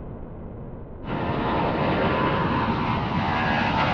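Several jet engines roar overhead.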